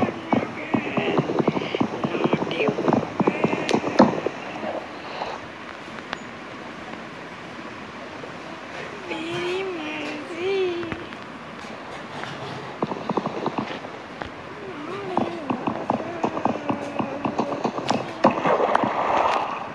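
Wooden blocks are placed and broken with short game knocks.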